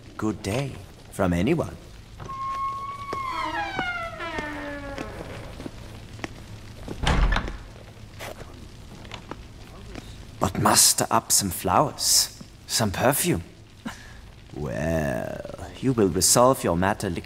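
A man speaks calmly and conversationally close by.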